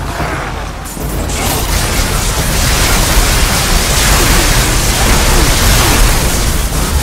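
Electricity crackles and buzzes loudly.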